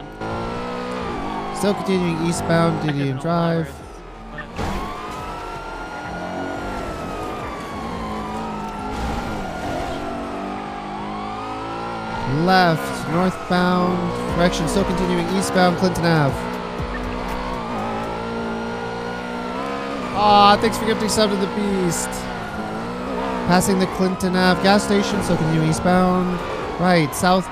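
A siren wails steadily, rising and falling.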